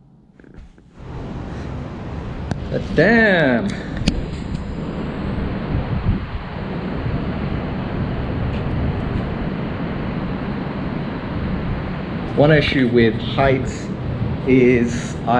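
Wind rushes steadily across the microphone outdoors.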